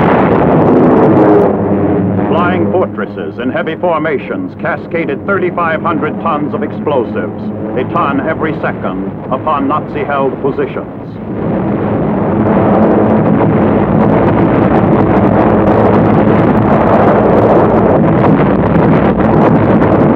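Bombs explode with deep rumbling blasts.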